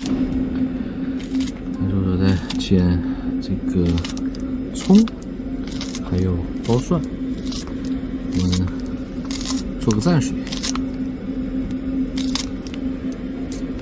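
Scissors snip repeatedly at something soft.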